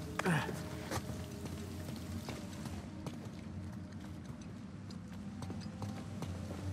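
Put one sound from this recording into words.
Footsteps scuff and tap on stone.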